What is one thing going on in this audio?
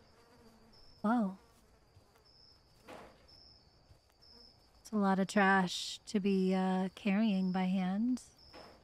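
A young woman speaks close to a microphone in drawn-out, sing-song tones.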